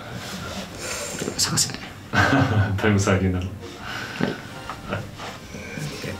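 Young men talk close to a microphone.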